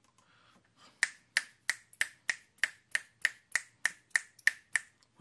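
A man snaps his fingers in a steady rhythm.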